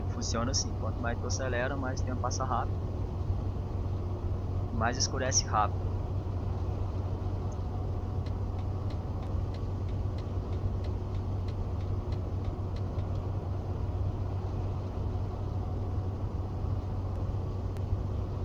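A bus engine hums steadily at a low pitch.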